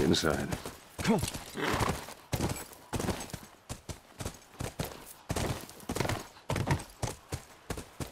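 A horse's hooves clop steadily on soft ground.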